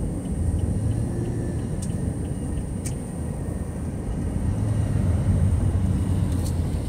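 Road noise rumbles steadily from inside a moving car.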